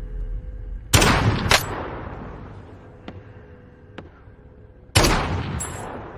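A rifle fires loud single shots that echo and fade.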